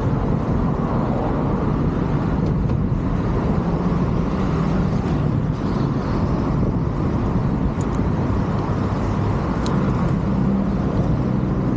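Cars pass by on a road nearby.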